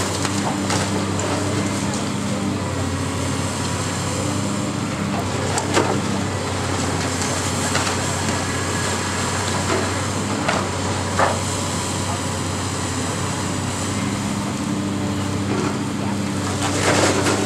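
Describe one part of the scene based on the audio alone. A water hose sprays with a steady hiss.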